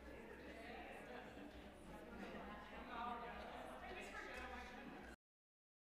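Several adults talk among themselves at a distance in a large echoing hall.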